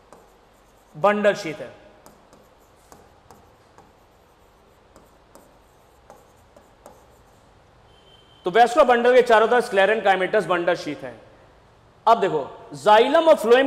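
A man lectures with animation, close to a microphone.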